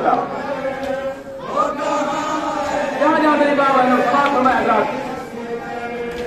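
A group of men chant together loudly outdoors.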